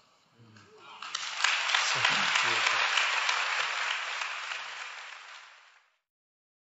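A large audience applauds in an echoing hall.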